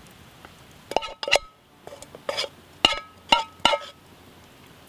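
A spoon clinks against a metal cup.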